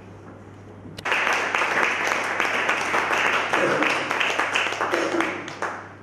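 An accordion plays a lively tune in an echoing room.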